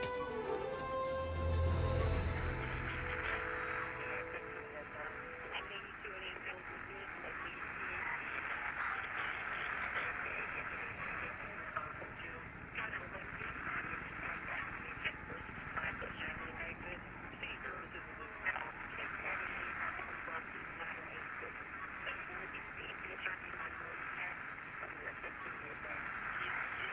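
Radio static hisses and crackles steadily.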